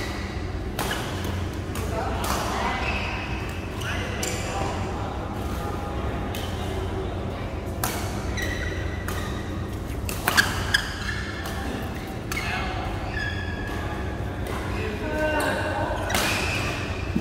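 Shuttlecocks are struck with rackets, with sharp pops.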